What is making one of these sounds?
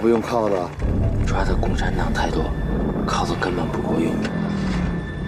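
A middle-aged man speaks in a low voice.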